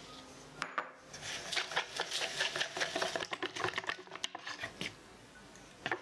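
A whisk beats batter quickly against a bowl, with rapid clinking.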